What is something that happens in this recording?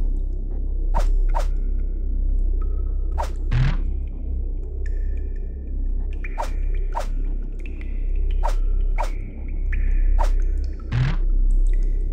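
Short electronic clicks sound as menu choices change.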